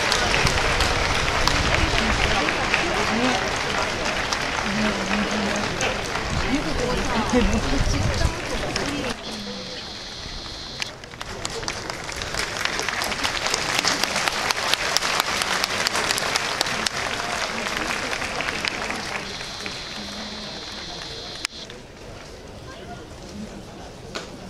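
A large stadium crowd claps and chants together in rhythm, echoing across the open stands.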